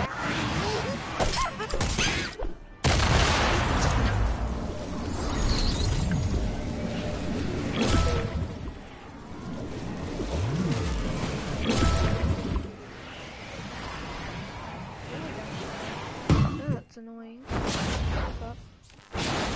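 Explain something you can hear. A pickaxe strikes and smashes objects.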